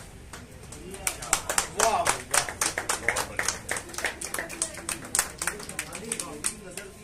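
A small group claps hands.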